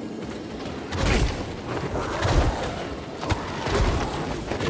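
Blades clash and swish in a fight.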